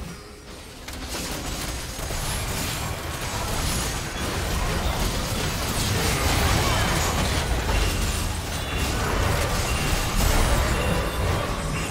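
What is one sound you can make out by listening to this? Game spell effects burst and clash in a busy fight.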